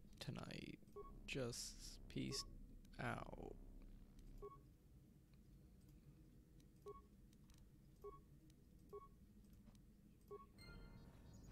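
Short electronic beeps sound one by one.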